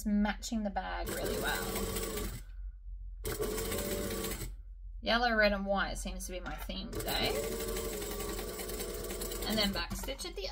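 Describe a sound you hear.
A sewing machine hums and stitches in short runs.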